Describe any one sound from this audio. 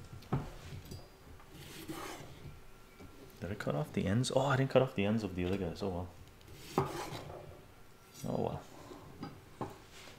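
A knife chops cucumber on a cutting board.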